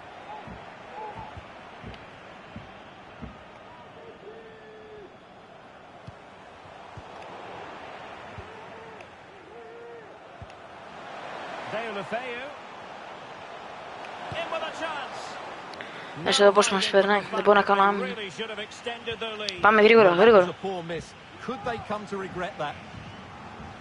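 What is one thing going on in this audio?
A stadium crowd murmurs and roars in the background.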